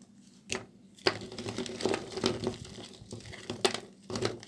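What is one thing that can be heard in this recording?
Soap chunks clatter and rustle as hands stir them in a pile.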